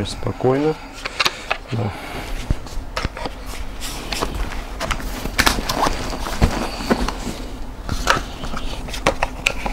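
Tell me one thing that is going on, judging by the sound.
A stroller's plastic parts click and rattle as a man adjusts them.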